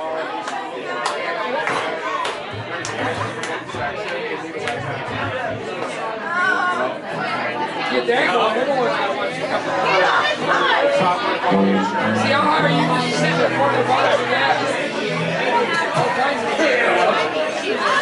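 An electric guitar strums chords.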